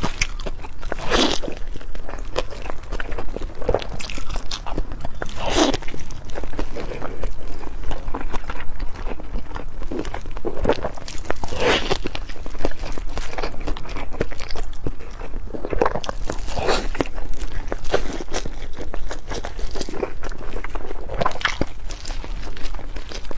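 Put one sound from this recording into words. A young woman chews and slurps food noisily close to a microphone.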